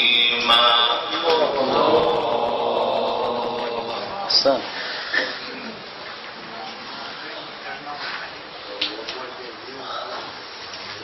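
A young man chants in a long, melodic voice through a microphone with echo.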